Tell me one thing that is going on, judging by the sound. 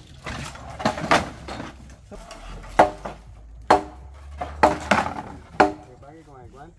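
Wooden planks knock and clatter as they are pulled loose and dropped.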